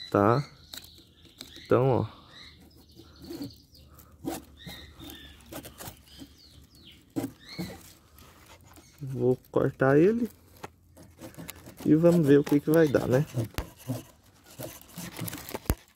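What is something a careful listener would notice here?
A knife cuts through dry plant stalks with small snaps.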